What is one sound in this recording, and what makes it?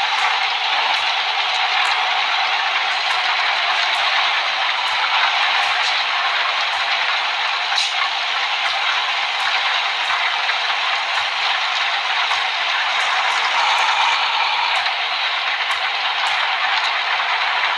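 Windshield wipers sweep back and forth.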